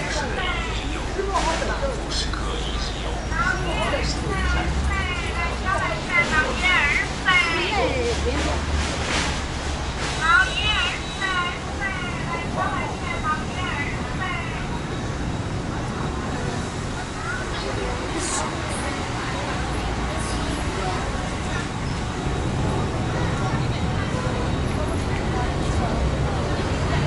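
Traffic rumbles steadily on a nearby street.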